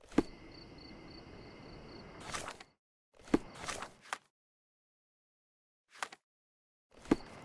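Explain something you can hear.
Short interface sounds click and swoosh several times.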